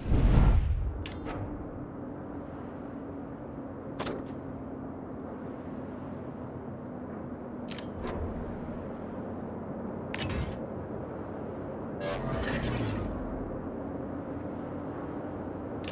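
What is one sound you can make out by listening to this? A warship's engine hums low and steady.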